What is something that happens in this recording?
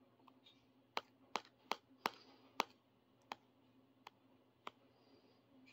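A finger clicks the buttons of a handheld game console.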